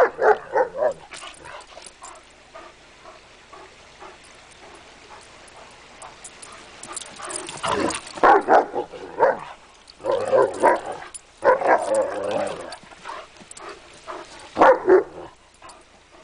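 Dogs growl and snarl playfully up close.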